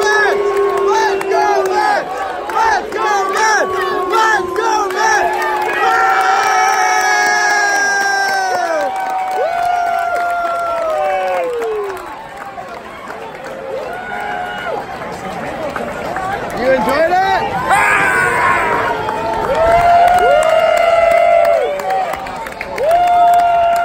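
A large crowd sings loudly together in an open stadium.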